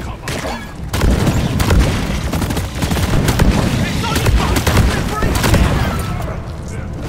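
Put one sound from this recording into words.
A gun fires a rapid stream of shots.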